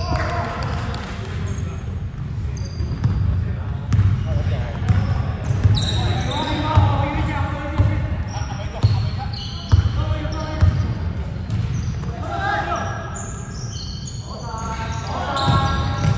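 A basketball bounces on a hard floor in a large echoing hall.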